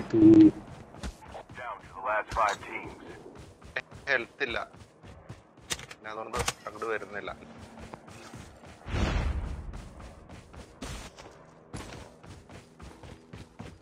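Footsteps crunch over grass.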